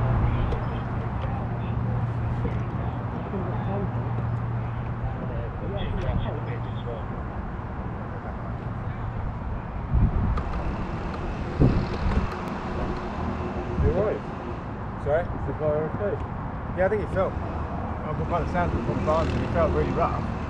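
A kart engine idles close by with a low, steady rumble.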